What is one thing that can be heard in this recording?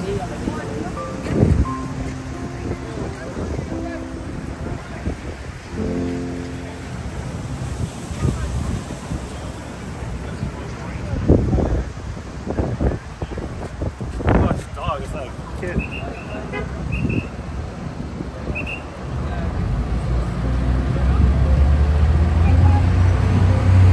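A crowd of passersby chatters outdoors in a busy street.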